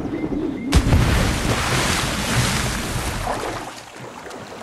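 Water splashes and swirls as a swimmer moves through it.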